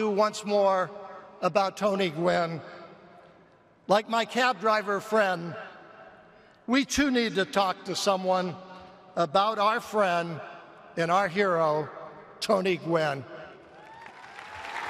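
An elderly man speaks slowly and with feeling into a microphone.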